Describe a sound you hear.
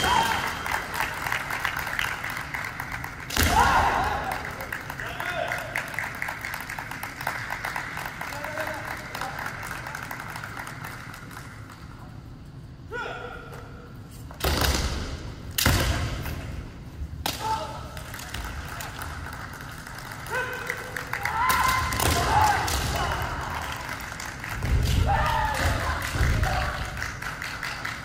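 Kendo fighters shout loud, drawn-out kiai cries.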